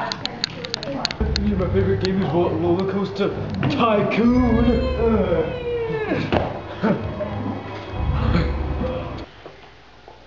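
A teenage boy talks excitedly close by.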